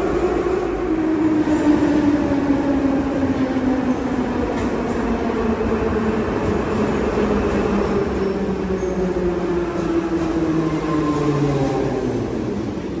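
A metro train rumbles into the station, its motors whining lower as it brakes.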